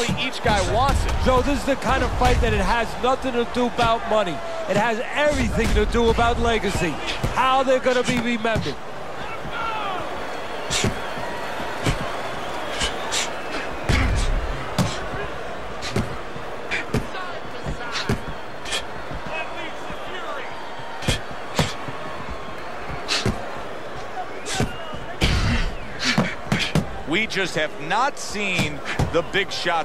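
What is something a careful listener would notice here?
Boxing gloves thud against a body in quick, sharp blows.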